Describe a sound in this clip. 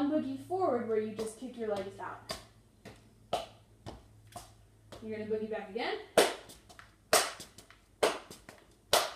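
Shoes tap sharply on a hard tiled floor.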